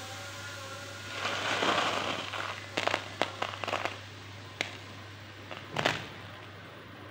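Salt crystals crunch and rustle in a hand.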